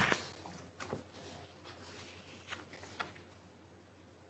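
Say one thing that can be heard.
A woman speaks quietly into a microphone.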